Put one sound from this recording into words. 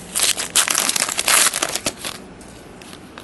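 Trading cards rustle and slide as hands handle them.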